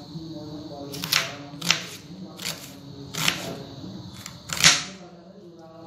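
A knife cuts through vegetables in sharp strokes.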